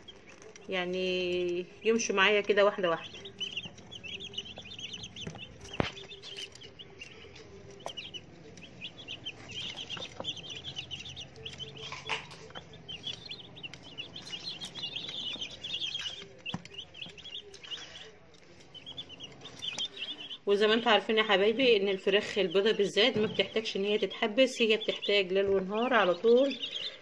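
Many chicks peep rapidly and shrilly, close by.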